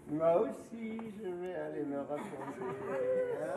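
A man sings in a deep voice in a large echoing hall.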